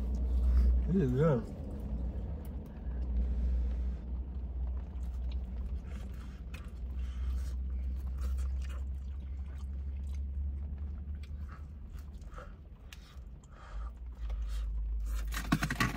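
Young men chew and bite into food up close.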